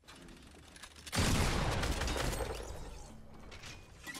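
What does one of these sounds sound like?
Shotgun blasts ring out loudly.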